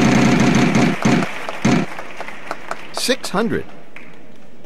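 A game show wheel clicks as it spins and slows down.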